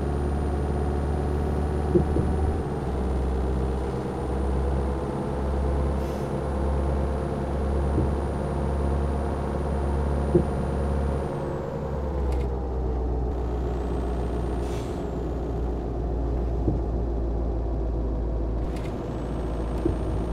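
A car engine hums steadily while driving, easing off slightly partway through.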